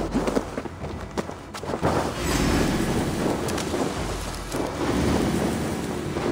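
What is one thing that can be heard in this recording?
Bushes rustle as a man pushes through them.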